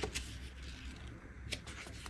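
Paper pages flutter as a booklet is flipped.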